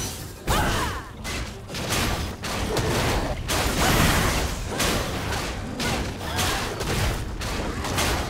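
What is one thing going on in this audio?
Video game combat effects whoosh and burst again and again.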